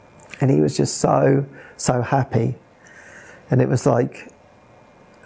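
A man speaks calmly and close to a clip-on microphone, in short phrases.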